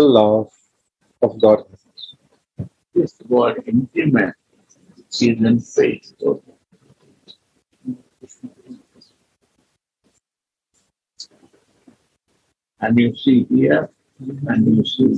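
A man speaks calmly nearby, with pauses.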